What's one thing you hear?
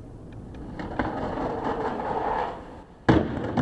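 Skateboard wheels grind and scrape along a metal handrail.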